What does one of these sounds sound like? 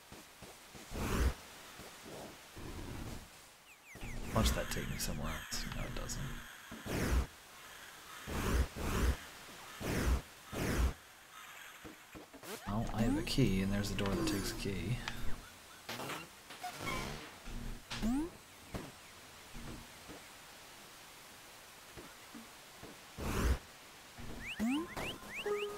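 Soft thuds sound as a small game character jumps and lands.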